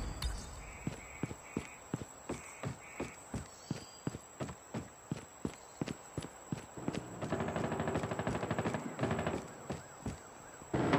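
Quick footsteps run steadily over hard ground.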